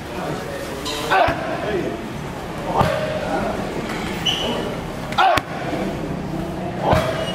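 A young man grunts sharply with each strike.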